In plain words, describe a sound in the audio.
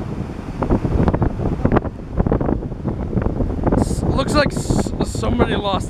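Small waves wash and break onto a sandy shore.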